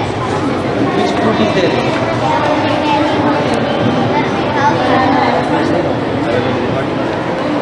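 Many children chatter in the background of a busy room.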